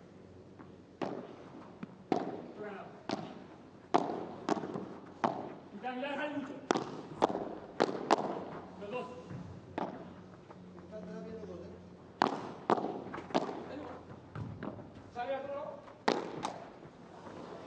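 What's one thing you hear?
A padel ball bounces off the court floor and glass walls.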